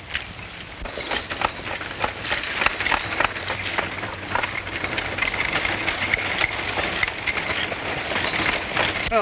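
A horse-drawn wagon rattles along a dirt road.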